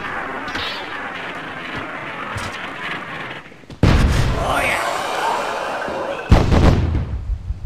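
Weapons clash in a melee battle.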